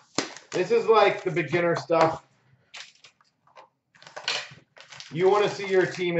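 Plastic wrap crinkles as hands handle a cardboard box.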